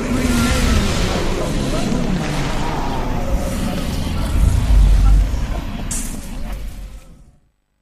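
A magical energy blast roars and crackles loudly.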